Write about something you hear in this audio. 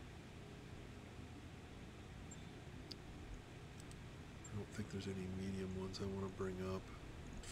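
Soft interface clicks sound as menu options are picked.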